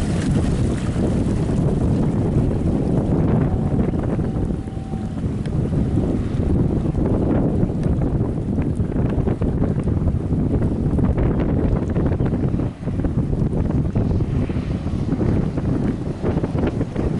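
A motorboat engine roars steadily.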